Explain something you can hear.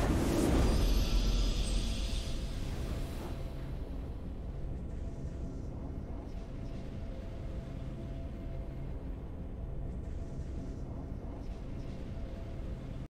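A triumphant game fanfare plays and settles into a soft, steady music.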